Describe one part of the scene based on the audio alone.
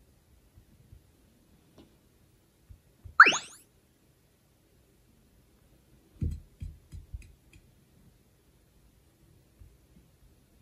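A finger taps softly on a touchscreen.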